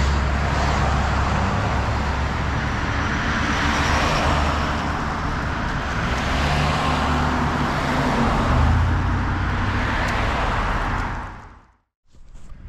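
Cars rush past close by on a road.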